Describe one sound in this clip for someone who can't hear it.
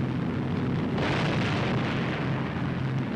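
Anti-aircraft guns fire with loud bursts.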